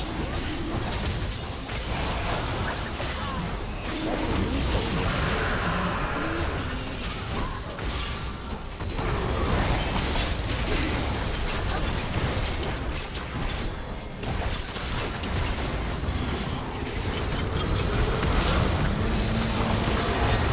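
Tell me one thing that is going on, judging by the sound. Weapons clash and strike in quick bursts.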